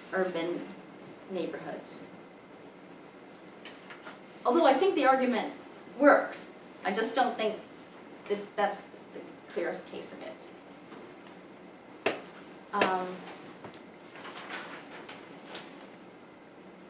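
A middle-aged woman speaks into a microphone in fits and pauses, in a room with a slight echo.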